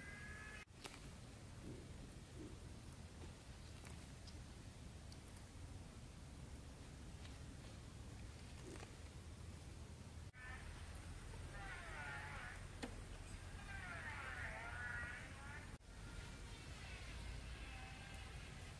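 Leafy plants rustle and snap as they are pulled up by hand.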